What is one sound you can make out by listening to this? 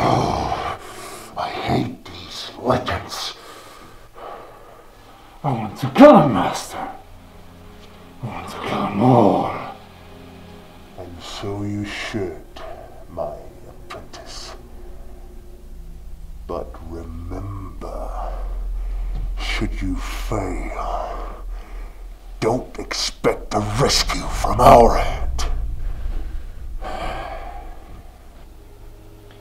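A man speaks.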